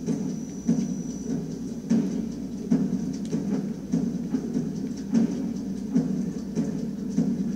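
Footsteps thud at a steady walking pace from a video game playing on a television speaker.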